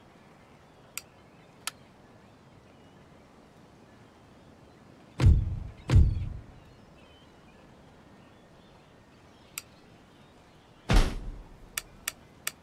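Short interface clicks sound as menus open and close.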